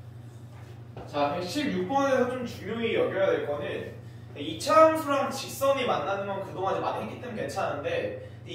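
A young man talks calmly and clearly, close to a microphone.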